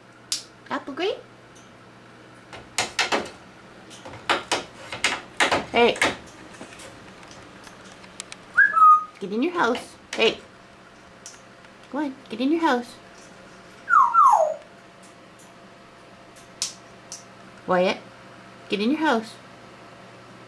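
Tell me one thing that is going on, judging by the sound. A parrot squawks, whistles and chatters close by.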